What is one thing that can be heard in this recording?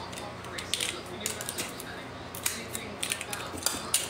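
Tape is pulled off a roll with a tearing sound.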